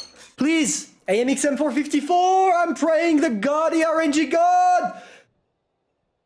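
A young man shouts and cheers with joy.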